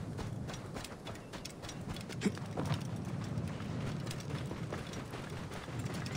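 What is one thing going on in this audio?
Hooves thud on sand at a steady gallop.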